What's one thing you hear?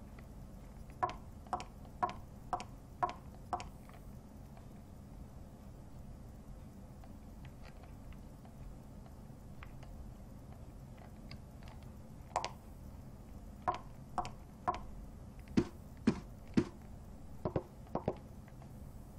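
Hard-soled footsteps click on a tiled floor.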